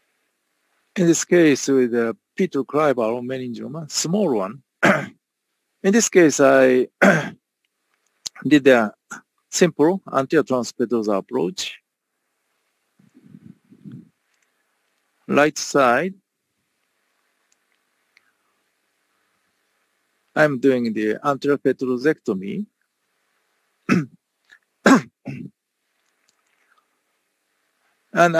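A man lectures calmly through a microphone on an online call, with pauses.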